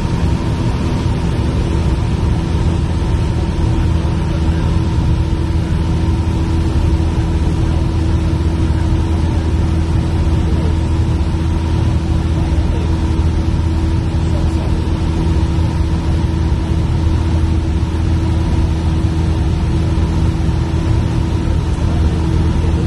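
A small propeller plane's engine drones loudly and steadily from inside the cabin.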